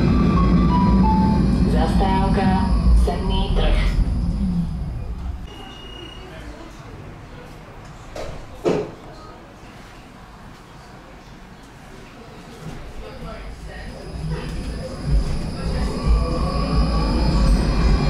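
A tram rumbles along its rails.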